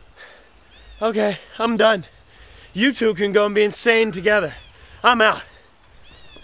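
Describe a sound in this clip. A young man speaks calmly and firmly, close by.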